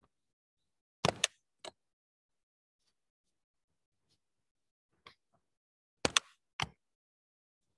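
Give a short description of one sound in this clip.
A hand knocks against the recording phone.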